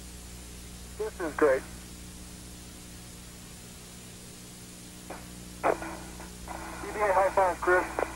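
A man speaks briefly over a crackly radio link.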